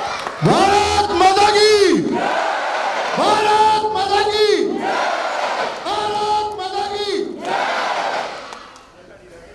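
A large crowd chants loudly together in an echoing hall.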